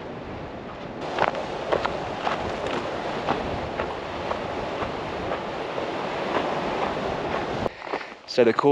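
Footsteps crunch on loose gravel and stones.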